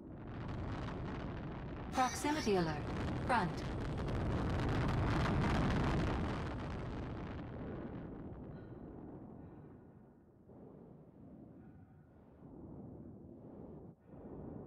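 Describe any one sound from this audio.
A spacecraft engine roars and then eases to a low hum.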